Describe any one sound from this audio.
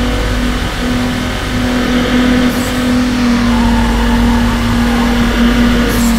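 Tyres hiss on the road at speed.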